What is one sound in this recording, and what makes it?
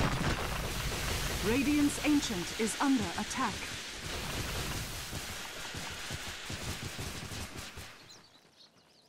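Magic spells crackle and weapons clash in a busy game battle.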